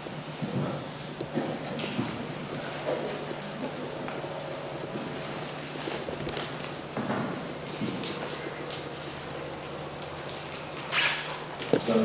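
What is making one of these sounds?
A man speaks calmly in a large echoing room.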